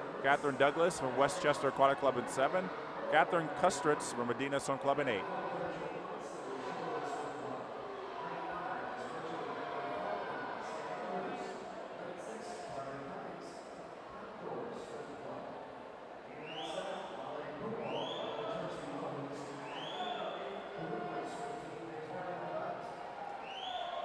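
Swimmers splash through the water.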